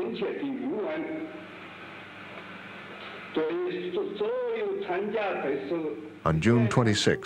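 An elderly man speaks calmly.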